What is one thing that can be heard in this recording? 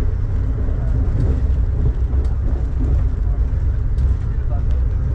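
Raindrops tap lightly on a window.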